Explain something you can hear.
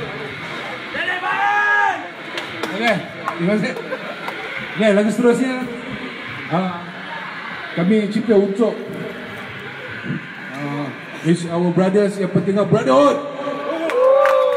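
A man sings into a microphone through loudspeakers.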